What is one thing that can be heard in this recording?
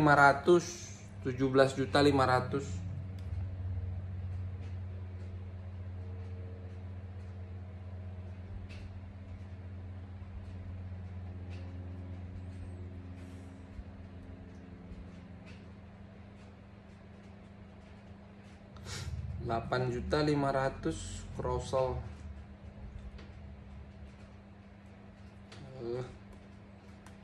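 A man talks calmly, close by.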